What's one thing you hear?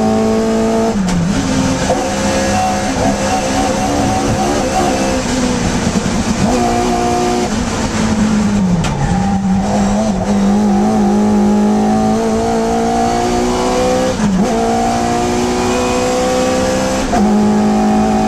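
A small race car engine drops in pitch as the driver changes gear.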